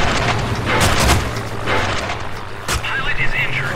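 Machine guns fire in short bursts.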